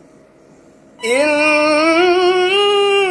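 A young man chants in a long, melodic voice through a microphone and loudspeakers, his pitch slowly rising.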